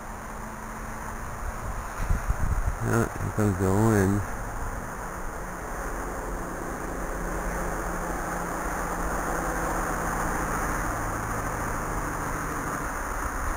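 A small drone's propellers buzz steadily overhead.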